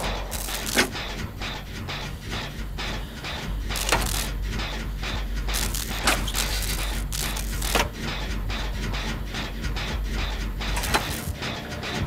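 A generator engine clanks and rattles rhythmically as it is repaired.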